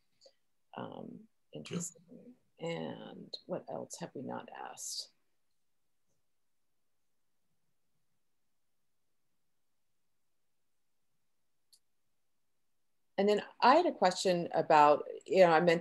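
A middle-aged woman talks calmly over an online call.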